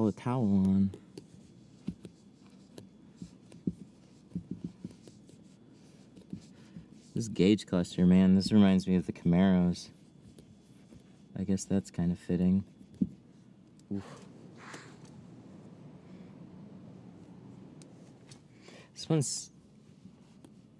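A plastic tool scrapes lightly over film.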